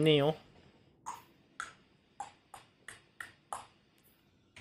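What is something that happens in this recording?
Short electronic blips sound in quick succession.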